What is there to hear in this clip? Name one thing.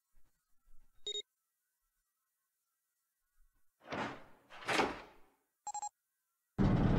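A mechanical lock beeps as a hand presses its dial.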